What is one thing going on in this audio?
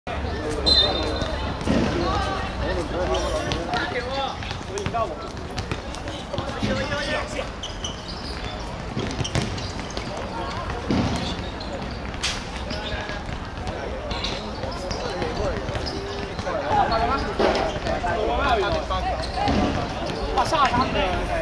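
Men shout to each other across an outdoor court.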